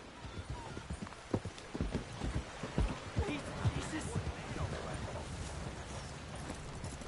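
Horse hooves thud on a dirt path.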